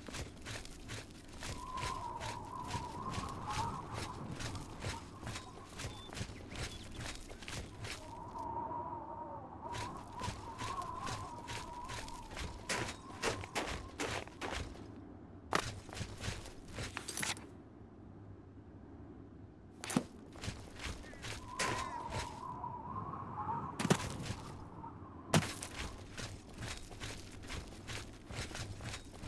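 Footsteps crunch quickly on rock and snow.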